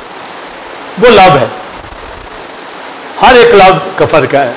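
A middle-aged man preaches forcefully into a microphone in a reverberant hall.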